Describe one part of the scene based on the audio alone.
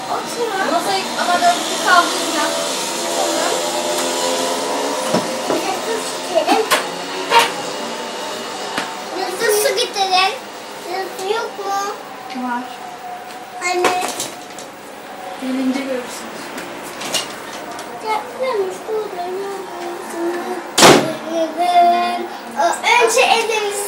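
Young children chatter and call out excitedly nearby.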